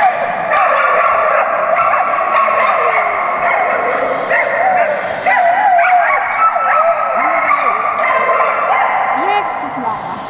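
A man shouts commands to a dog in a large echoing hall.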